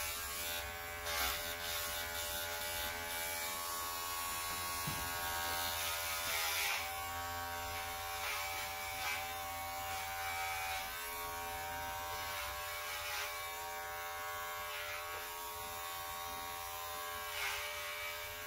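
Electric hair clippers buzz steadily up close.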